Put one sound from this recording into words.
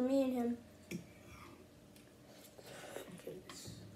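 A boy slurps noodles.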